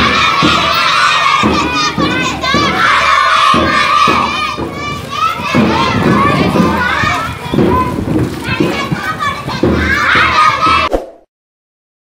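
A crowd of children chant and shout loudly outdoors.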